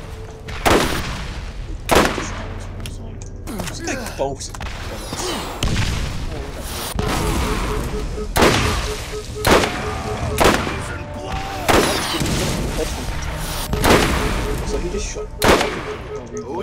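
Loud gunshots crack out one after another.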